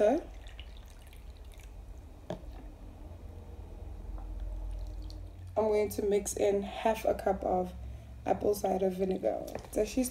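Water pours into a cup.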